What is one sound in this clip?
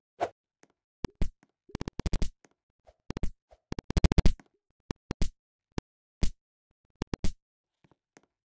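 Quick game sound effects pop and thump.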